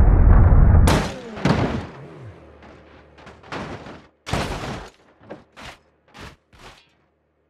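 Metal bangs and clatters as a wrecked car tumbles.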